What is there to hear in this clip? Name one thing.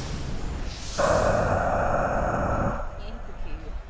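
A huge creature lets out a deep, loud roar.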